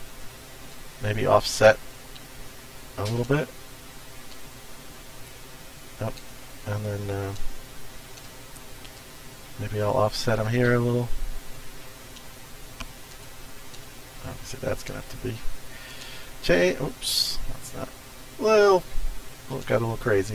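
A man talks calmly and casually into a microphone, close by.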